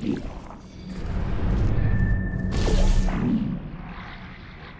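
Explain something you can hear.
Air rushes past in a loud whoosh while flying at speed.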